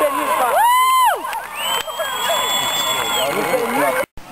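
A referee's whistle blows shrilly outdoors.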